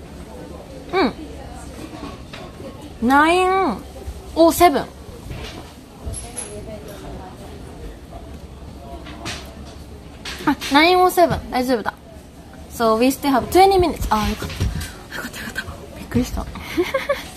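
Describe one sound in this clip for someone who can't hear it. A young woman speaks close by in short, animated bursts.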